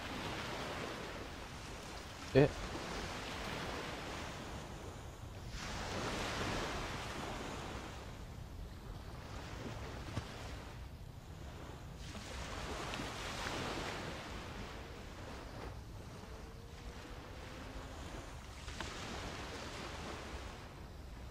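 Wind gusts outdoors, rising and falling.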